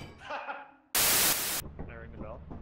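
Loud static hisses briefly.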